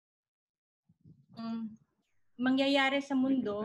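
A young woman speaks calmly on an online call.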